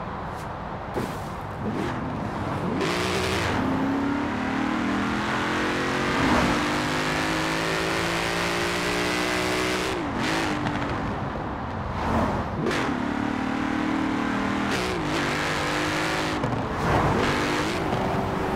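Exhaust pops and crackles between gear changes.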